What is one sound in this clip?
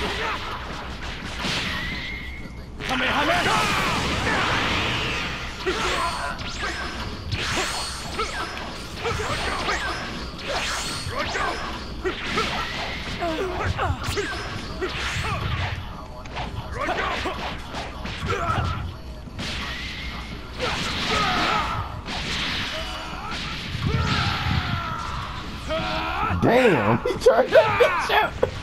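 Punches and kicks land with sharp thuds and blasts.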